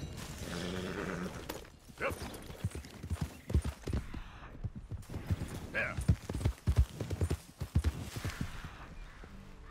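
Horse hooves thud on grass at a gallop.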